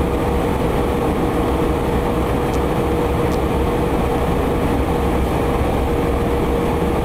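Jet engines drone steadily in flight.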